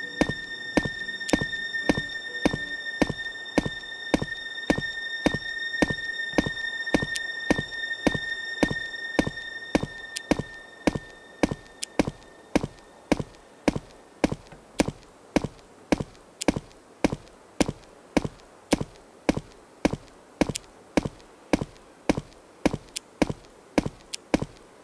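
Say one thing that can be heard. Footsteps tread steadily through grass.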